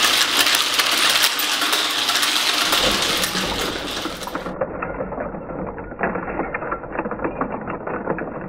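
A small engine runs with a fast, steady rattling clatter.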